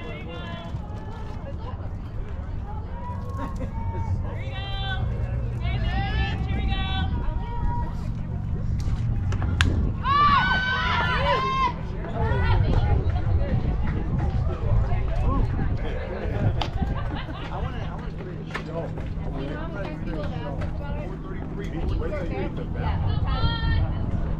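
Young women shout and chant cheers from nearby, outdoors.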